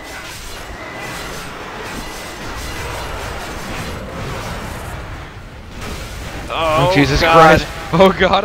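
Magic blasts and weapon strikes crackle and whoosh in a fight.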